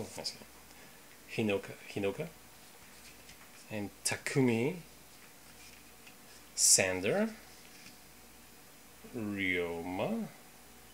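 Stiff cards rustle and slide against each other in hands.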